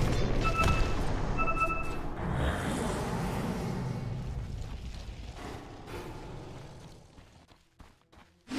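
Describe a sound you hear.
Magic spells crackle and burst with explosions in a noisy fight.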